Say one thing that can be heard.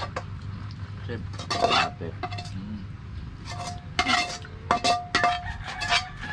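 A metal pan clatters as it is lifted and set down.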